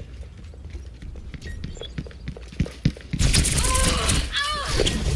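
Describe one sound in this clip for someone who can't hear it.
Quick footsteps tap on hard ground.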